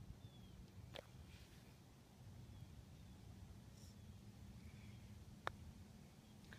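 A putter taps a golf ball with a short click.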